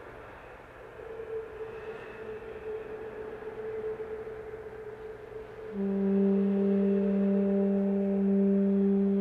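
Trombones play a loud sustained chord together.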